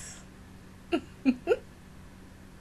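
A young woman laughs briefly, close to a microphone.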